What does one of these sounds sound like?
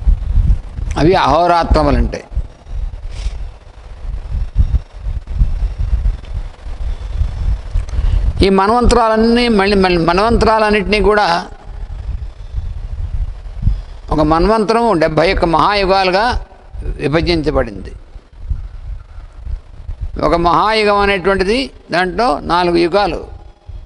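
An elderly man chants slowly into a microphone, in bursts with pauses.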